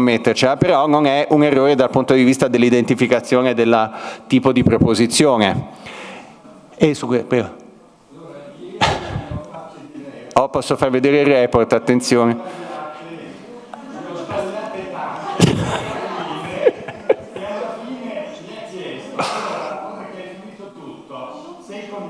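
A man speaks steadily through a microphone in a large room.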